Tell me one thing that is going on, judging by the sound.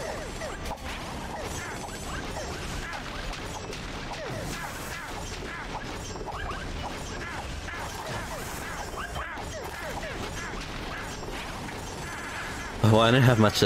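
Video game explosions burst repeatedly.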